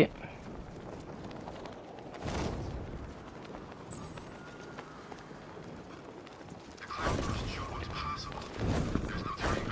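Wind rushes past as a caped figure glides.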